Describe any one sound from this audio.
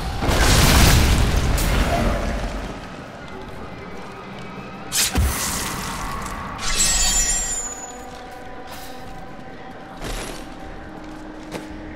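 Swords clash and strike in a fierce fight.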